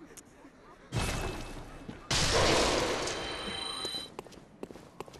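A magical burst whooshes and shimmers loudly.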